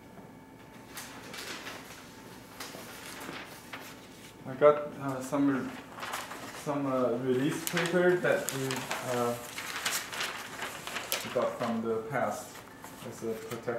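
Paper rustles and crinkles as it is unrolled and handled.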